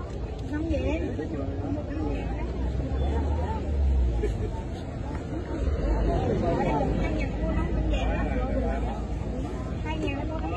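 A crowd of adults talks close by.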